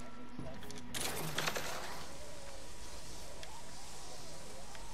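A zipline whirs as a character slides along it.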